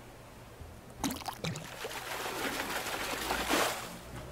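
A fish splashes in the water.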